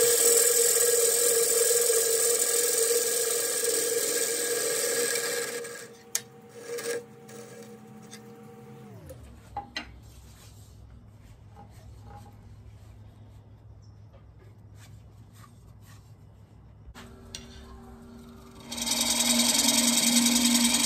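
A wood lathe gouge scrapes and shaves a spinning piece of wood loudly.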